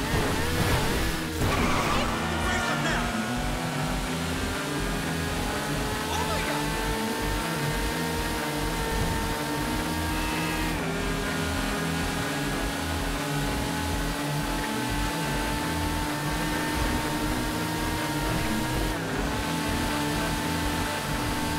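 A motorcycle engine roars steadily at high speed, shifting gears now and then.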